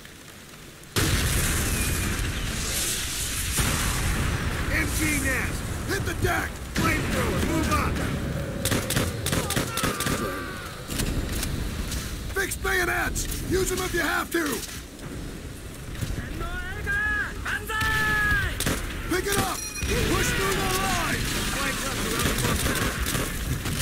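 Rifles fire in sharp, rapid shots nearby.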